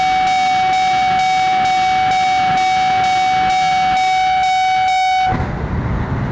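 A railway crossing bell rings rapidly.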